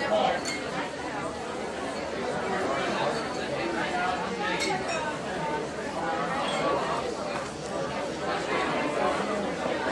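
Many voices of shoppers murmur nearby indoors.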